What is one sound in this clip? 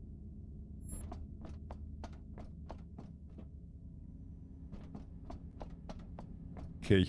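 Footsteps clank steadily on a metal floor.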